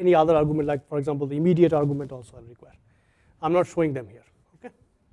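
A man speaks clearly into a microphone, lecturing.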